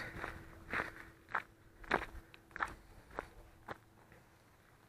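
Footsteps crunch on a gravel path at a steady walking pace.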